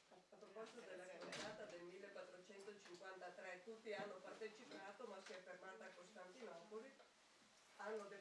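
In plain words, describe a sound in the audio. A woman speaks calmly at a steady pace.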